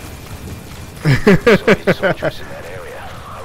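A man laughs loudly and heartily close to a microphone.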